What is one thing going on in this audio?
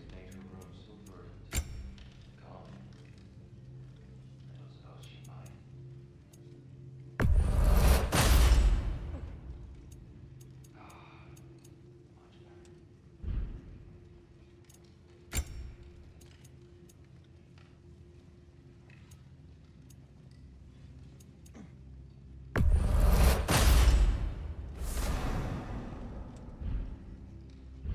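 Soft menu clicks tick as selections change.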